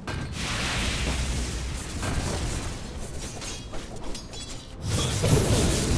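Fantasy game battle sounds clash and crackle.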